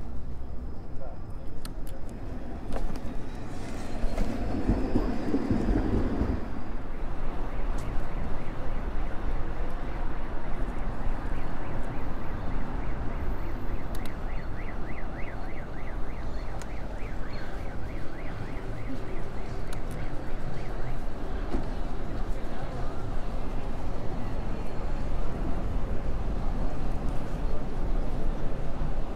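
Wind rushes past steadily outdoors.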